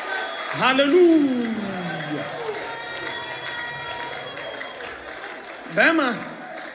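A crowd sings and cheers loudly in a large echoing hall.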